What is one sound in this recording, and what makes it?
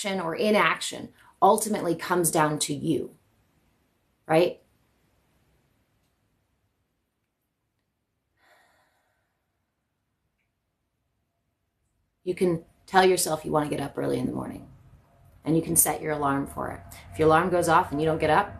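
A young woman speaks calmly and softly, close by.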